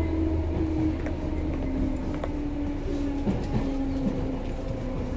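Train wheels click and squeal on the rails.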